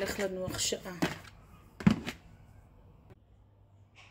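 A plastic lid knocks onto a bowl.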